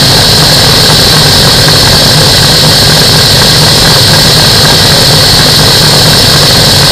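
A small aircraft engine drones loudly and steadily.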